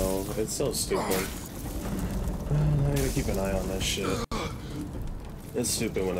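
Sparks crackle and fizz.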